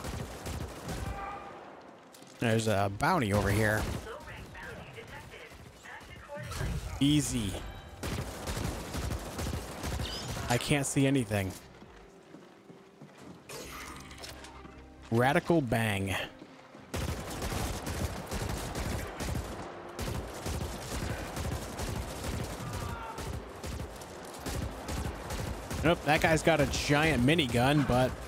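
Energy weapons fire in rapid bursts of zaps.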